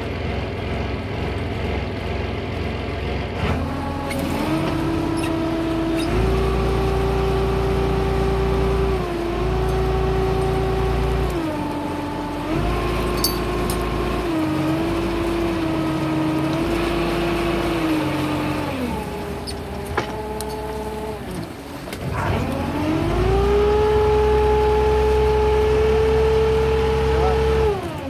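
A boat engine rumbles low nearby.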